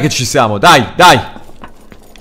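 A young man speaks loudly and excitedly into a microphone, close by.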